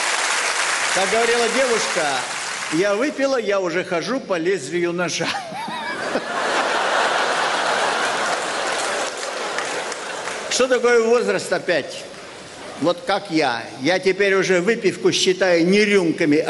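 An elderly man reads out through a microphone with expression.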